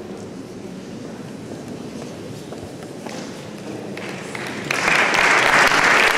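A seated audience murmurs softly in a large echoing hall.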